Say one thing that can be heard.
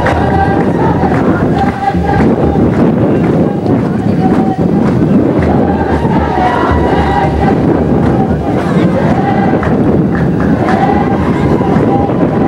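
A crowd of people sings together nearby outdoors.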